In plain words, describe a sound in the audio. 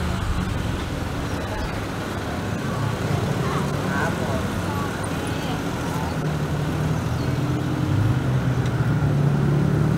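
Street noise murmurs steadily outdoors.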